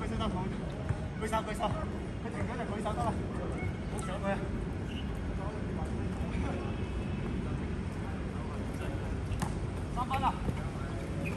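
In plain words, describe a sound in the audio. Young men call out to each other during a basketball game outdoors.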